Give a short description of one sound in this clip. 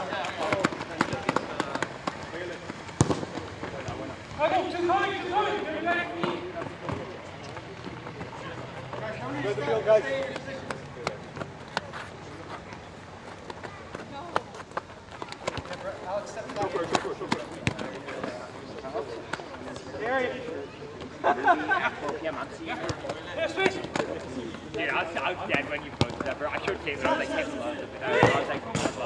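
Young men shout and call out to each other outdoors during a game.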